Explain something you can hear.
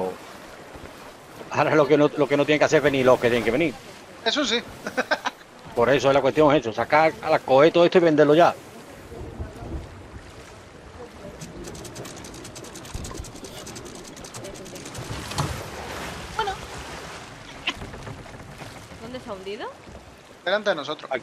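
Sea waves splash and wash against a wooden boat.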